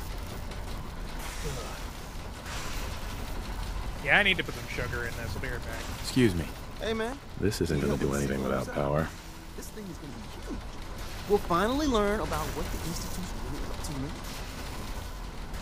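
Electric arcs crackle and buzz.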